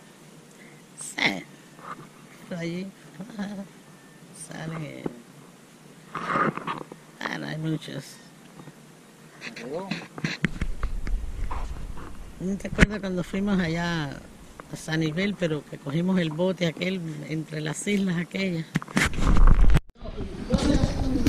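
A middle-aged man talks casually close by.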